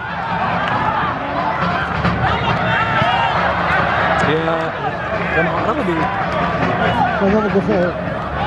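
A crowd chants and cheers loudly in an open stadium.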